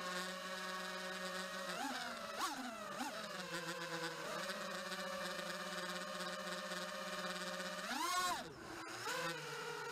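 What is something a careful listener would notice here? Small drone propellers whine steadily, rising in pitch in brief surges.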